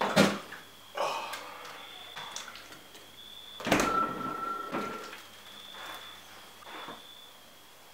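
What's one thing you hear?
Plastic rustles and knocks as items are taken from a fridge.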